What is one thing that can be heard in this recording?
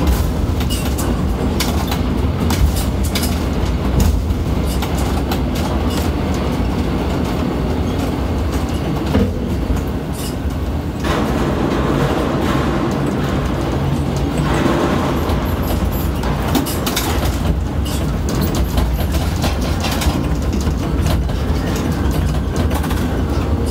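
A crane's machinery hums and rumbles steadily.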